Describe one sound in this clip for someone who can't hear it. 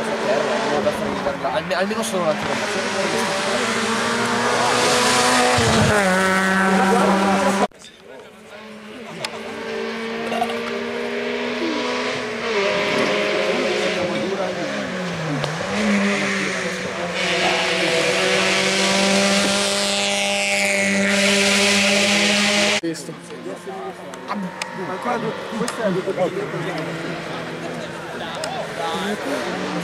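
A rally car engine roars at high revs as the car speeds past.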